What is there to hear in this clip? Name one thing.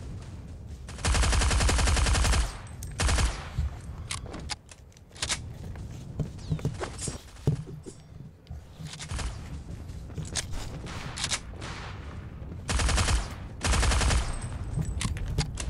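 Rapid bursts of rifle gunfire ring out loudly.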